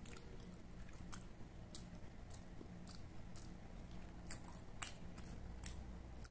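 A man sucks and licks his fingers with wet smacking sounds.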